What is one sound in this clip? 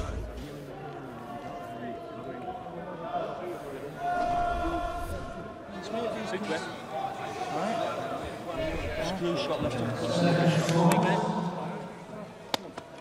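A man speaks urgently up close.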